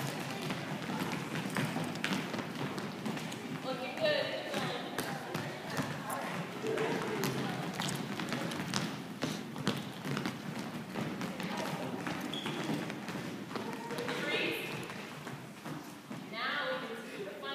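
Young women talk and call out in a large echoing hall.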